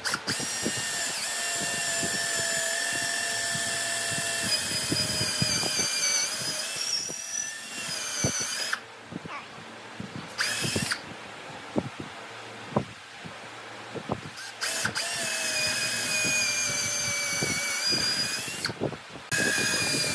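A cordless drill whirs as it bores into wood.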